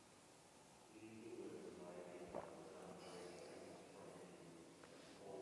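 A man chants slowly in a large echoing hall.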